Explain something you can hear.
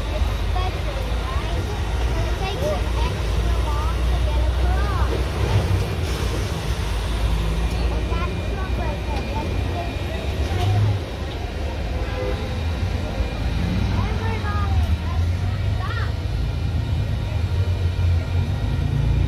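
A large outdoor crowd murmurs and chatters.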